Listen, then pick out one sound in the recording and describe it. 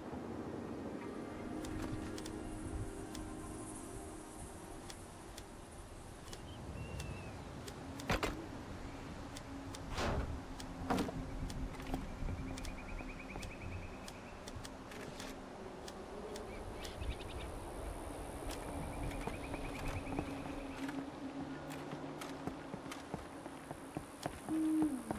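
Wooden building pieces snap into place with quick knocks and clunks.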